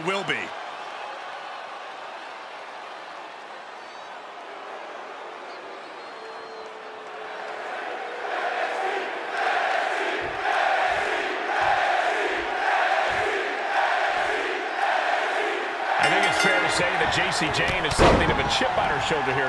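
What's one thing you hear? A large crowd cheers and roars in a big echoing arena.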